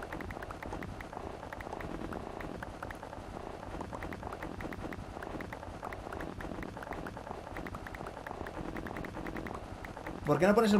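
Blocks crack and break in rapid, repeated clicks.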